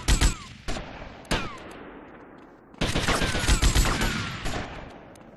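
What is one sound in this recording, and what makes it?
Guns fire in short bursts of shots.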